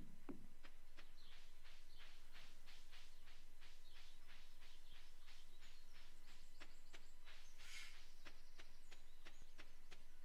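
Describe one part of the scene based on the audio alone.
Small footsteps patter quickly on dirt and grass.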